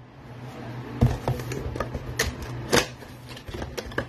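A cardboard box is torn open.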